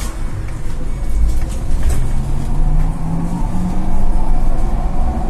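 An electric bus motor whines, rising in pitch as the bus pulls away.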